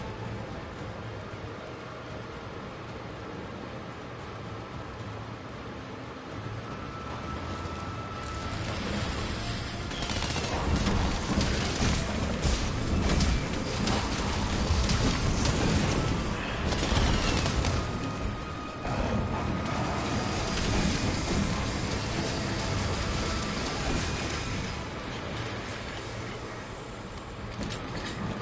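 Lava rumbles and bubbles in a low, steady roar.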